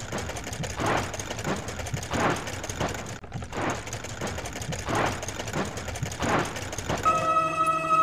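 A spinning brush whooshes in repeated swishes.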